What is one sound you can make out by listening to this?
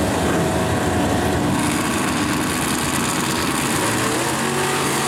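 Two car engines idle with a deep rumble.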